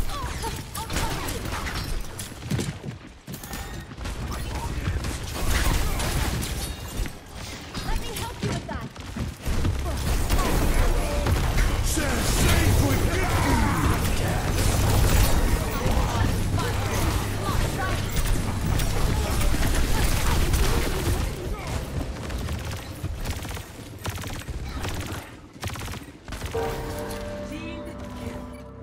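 Rapid video game gunfire crackles and pops.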